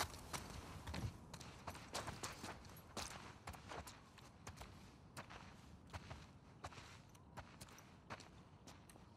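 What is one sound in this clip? Footsteps tread slowly across a hard floor indoors.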